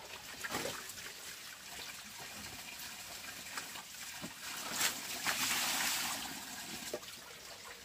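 Hands scrape and tap on a wooden board.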